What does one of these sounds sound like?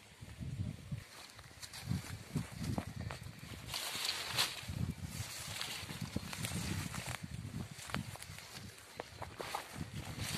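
Leaves and branches rustle as men push through bushes.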